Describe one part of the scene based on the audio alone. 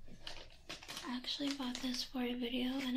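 A woman talks animatedly close by.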